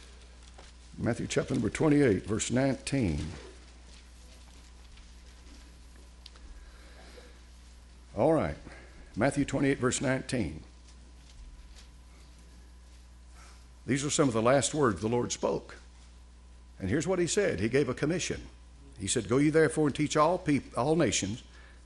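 An elderly man speaks calmly and deliberately through a microphone, pausing between phrases.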